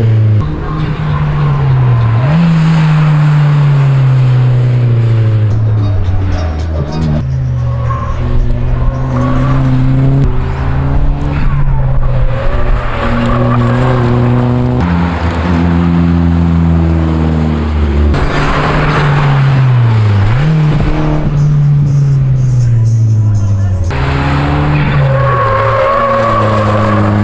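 A car engine revs hard, rising and falling as gears change.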